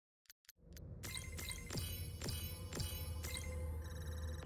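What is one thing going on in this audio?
Chimes ring out as scores are tallied.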